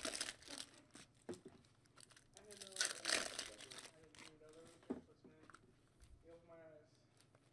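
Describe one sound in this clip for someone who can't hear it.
Cards shuffle and slap against a stack.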